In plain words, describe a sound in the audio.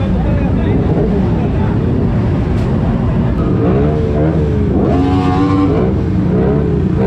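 Motorcycle engines rumble and rev loudly close by.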